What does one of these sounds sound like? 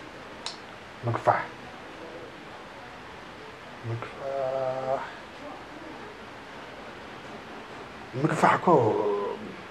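A man murmurs and sighs quietly, close by.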